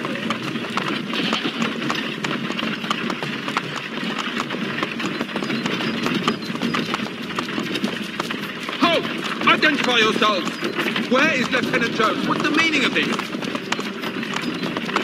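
Horse hooves clop steadily.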